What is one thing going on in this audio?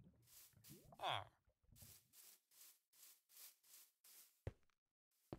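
Video game footsteps crunch on grass.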